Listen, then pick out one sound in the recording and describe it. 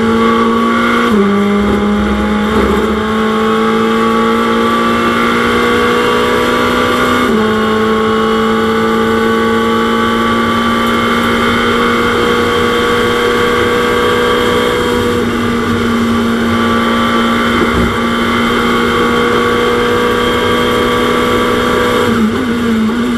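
A racing car engine roars loudly, its pitch stepping up with each gear change.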